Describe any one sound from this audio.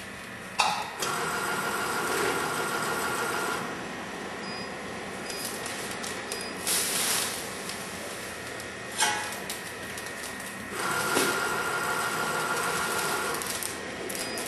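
A machine motor whirs for a few seconds at a time.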